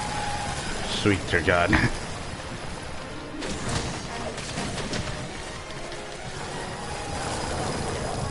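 Ice bursts and crackles with sharp blasts.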